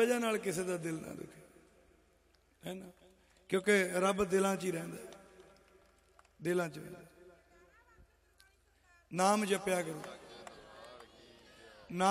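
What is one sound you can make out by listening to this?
A young man sings through a microphone and loudspeakers in short phrases with pauses.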